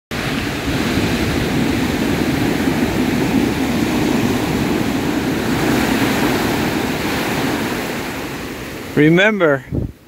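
Waves wash up onto a beach and foam as they draw back.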